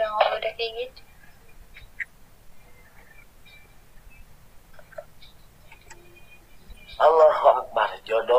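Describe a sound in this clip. A young woman talks with animation through an online call.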